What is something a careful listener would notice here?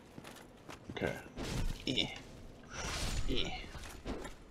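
A sword clashes and strikes in combat.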